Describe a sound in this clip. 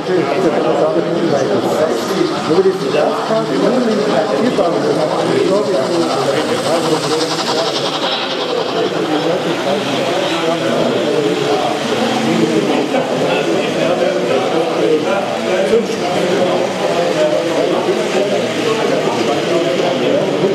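A small model train hums and rattles along its track, passing close by.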